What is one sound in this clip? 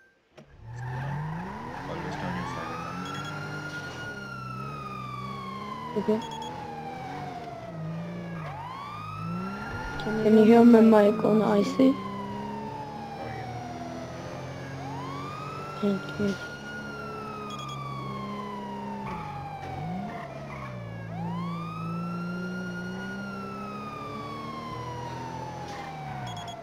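A siren wails, rising and falling slowly over and over.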